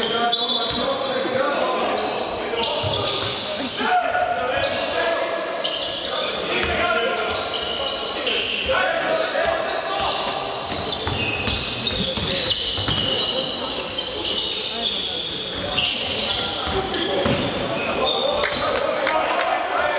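Players shout to each other across the court.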